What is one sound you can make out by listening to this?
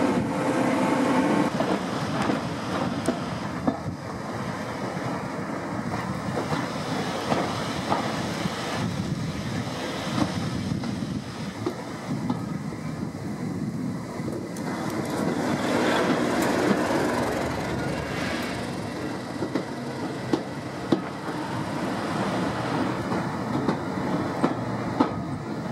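A diesel engine drones ahead.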